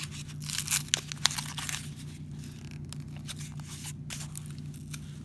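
Terry cloth rustles and scrapes close by as a hand rubs against it.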